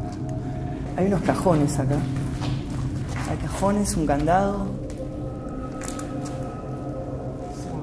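A young man talks close by in a low voice.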